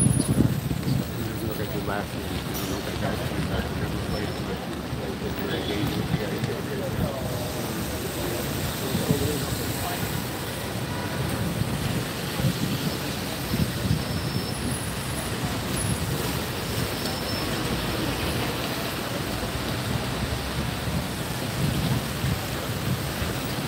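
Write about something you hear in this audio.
A crowd of men and women prays aloud together outdoors.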